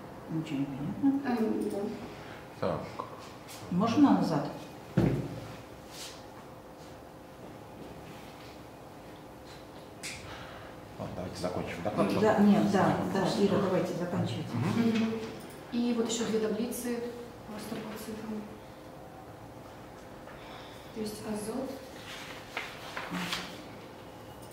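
A young woman speaks calmly, with pauses.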